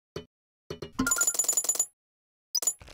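Coins clink and chime in a quick burst.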